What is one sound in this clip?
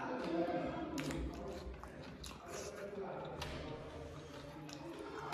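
A young man chews food close to the microphone.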